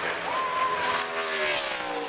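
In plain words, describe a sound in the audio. A crowd cheers.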